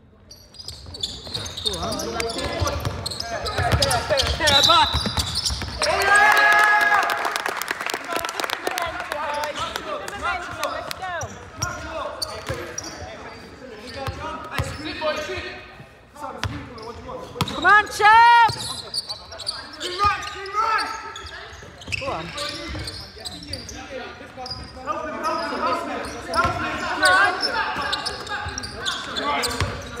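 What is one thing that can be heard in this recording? Young men shout to each other across the hall.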